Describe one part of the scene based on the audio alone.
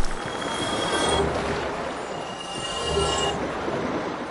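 A bright chime rings.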